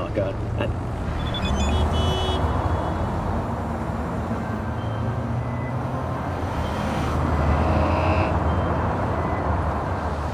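A car engine roars as the car drives fast.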